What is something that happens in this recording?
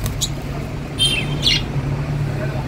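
A budgerigar chirps.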